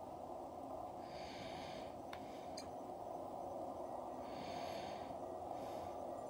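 A handheld game console's speaker gives soft rapid chirps as text scrolls.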